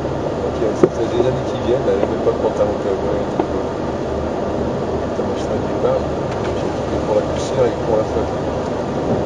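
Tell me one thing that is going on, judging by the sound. A man reads out pace notes over a helmet intercom.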